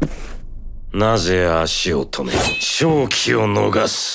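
A man speaks with a low, menacing voice.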